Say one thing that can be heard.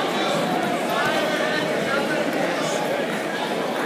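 Bare feet thump on a mat as two wrestlers fall.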